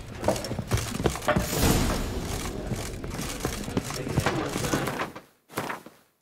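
Footsteps scuff and thud on a hard floor.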